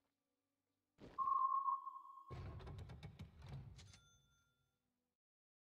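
Video game sound effects chime and whoosh as pieces are placed.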